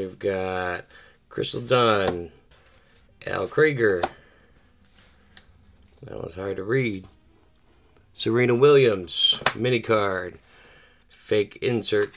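Paper cards slide and tap against each other.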